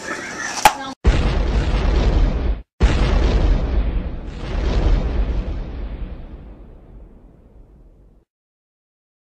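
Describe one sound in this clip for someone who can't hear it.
A huge explosion booms and rumbles, slowly fading away.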